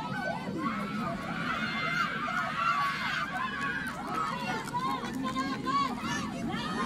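Young women shout to each other across an outdoor playing field.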